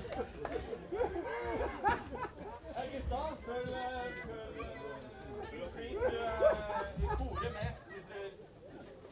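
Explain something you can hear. Men chat casually nearby.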